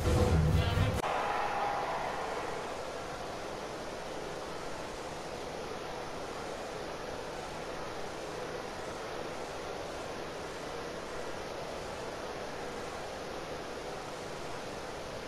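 A large stadium crowd murmurs steadily in the distance.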